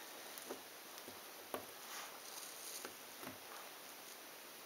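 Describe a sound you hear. Small cardboard puzzle pieces click and rustle softly on a table.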